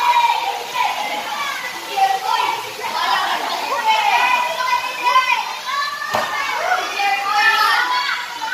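Children shout and scream excitedly nearby.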